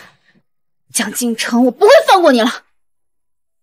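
A young woman speaks angrily nearby.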